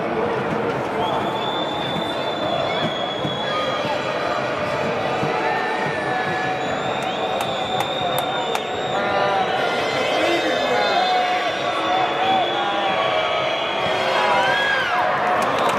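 Fans whistle shrilly from the stands.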